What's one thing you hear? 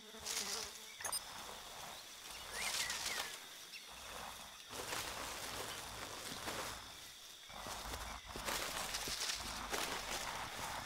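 Footsteps rustle through dense leaves and undergrowth.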